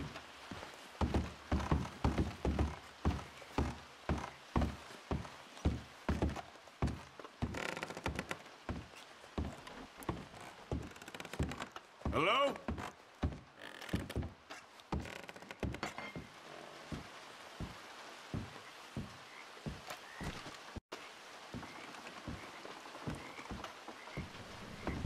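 Boots thud on wooden stairs and floorboards in a steady rhythm.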